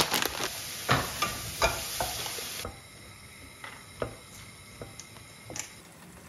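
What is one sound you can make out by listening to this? A wooden spoon scrapes and knocks against a pan while stirring.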